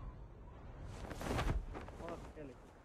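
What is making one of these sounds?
A parachute snaps open with a sudden whoosh.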